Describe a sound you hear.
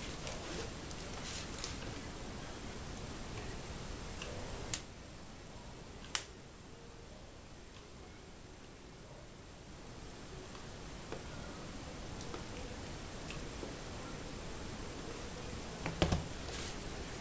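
A plastic plug clicks and knocks against a paper bag.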